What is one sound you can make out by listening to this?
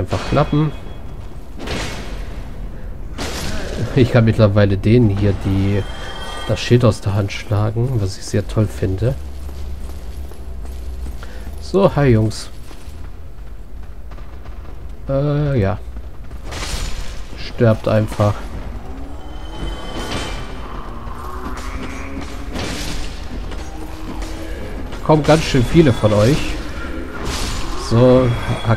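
Swords clash with sharp metallic clangs.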